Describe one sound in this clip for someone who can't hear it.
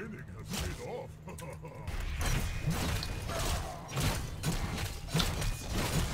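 Game spells blast and weapons clash in a busy fight.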